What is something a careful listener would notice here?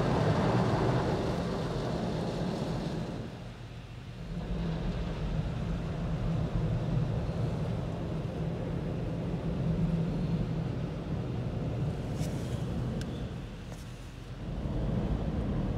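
Water sprays and drums against a car window.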